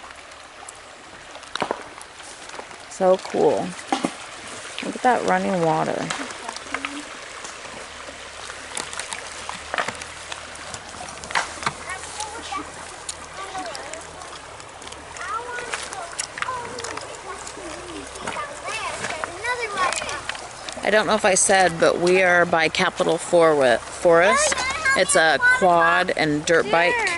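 A shallow stream trickles over stones.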